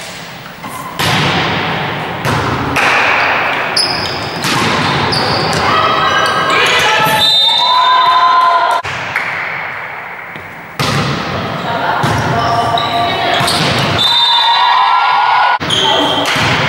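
A volleyball is struck with sharp smacks that echo through a large hall.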